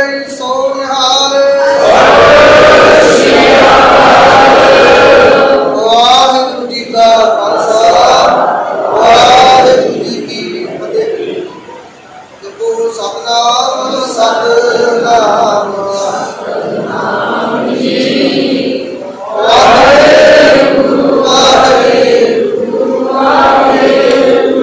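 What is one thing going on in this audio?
A crowd of women sings along in unison.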